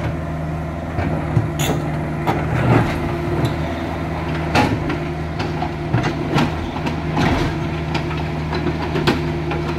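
Rocks clatter and knock as an excavator bucket moves them.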